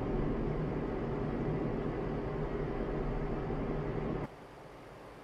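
A truck engine hums loudly and steadily from close by, then suddenly drops to a quieter rumble.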